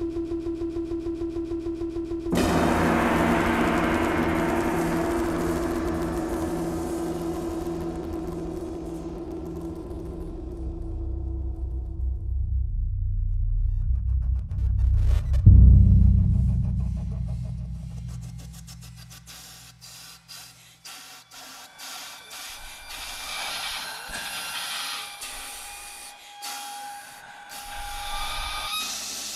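Electronic music plays with deep droning tones that swell and fade.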